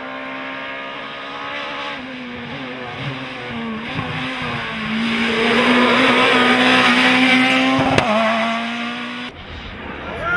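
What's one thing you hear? A rally car engine revs hard and changes gear as the car speeds past.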